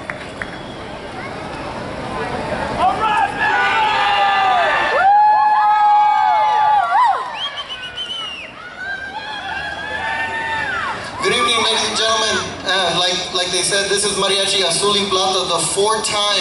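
A band plays lively music outdoors.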